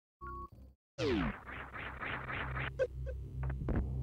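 Retro video game music plays with a buzzing electronic tone.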